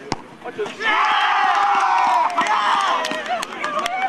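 A crowd of young men cheers and shouts loudly outdoors.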